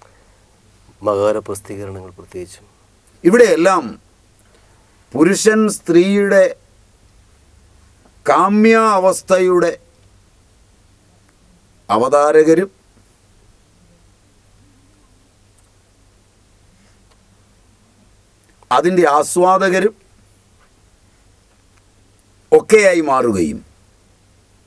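A man speaks with animation in short bursts, close to a microphone.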